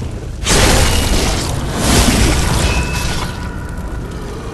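A heavy blade strikes flesh with a loud wet splatter.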